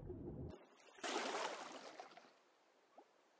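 Water splashes loudly as a swimmer breaks the surface.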